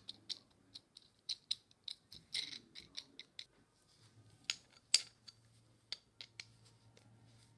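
Small metal parts click and clink against wood.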